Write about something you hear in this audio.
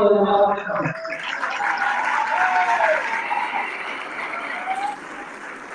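A large crowd murmurs and calls out in an echoing hall.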